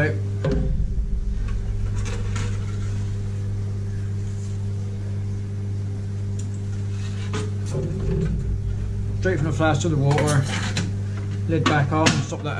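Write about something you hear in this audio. A metal lever clanks and clicks as a hand press is worked.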